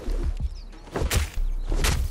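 A stone pick hacks wetly into a body.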